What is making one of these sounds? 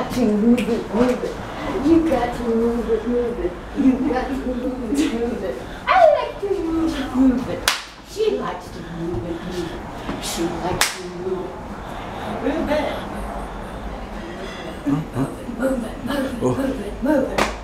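An elderly woman sings and chants with animation close by.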